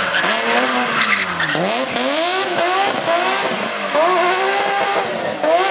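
Tyres squeal on tarmac.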